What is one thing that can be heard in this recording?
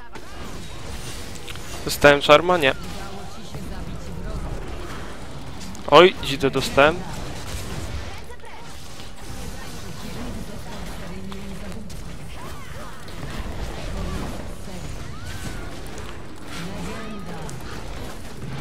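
Video game battle effects clash and crackle.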